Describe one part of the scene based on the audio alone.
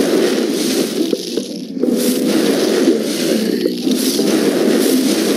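Game explosions and fire bursts whoosh and crackle.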